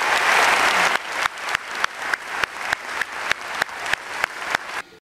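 A man claps his hands in a steady, quick rhythm.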